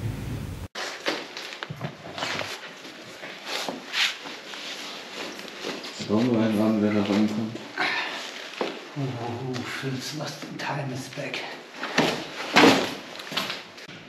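A man climbs through a window, his clothes rustling.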